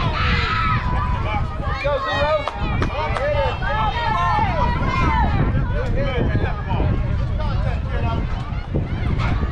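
Young girls cheer and chant loudly across the field.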